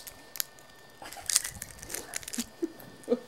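A toddler munches on a crisp.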